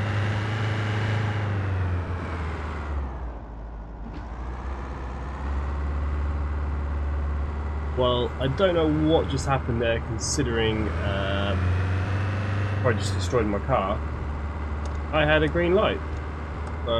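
A car engine hums steadily, its pitch dropping and rising as the car slows and speeds up.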